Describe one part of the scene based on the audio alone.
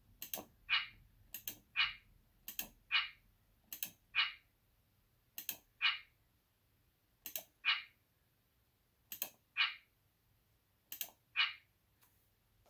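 Short electronic clicks and chimes sound in pairs every couple of seconds.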